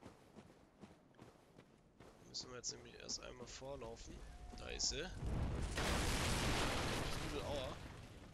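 Footsteps run quickly over rough ground.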